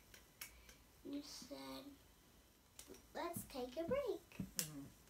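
A young girl speaks close by in a high voice.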